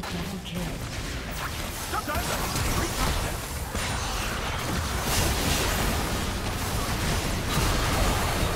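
Magical spells whoosh and burst with blasts and impacts.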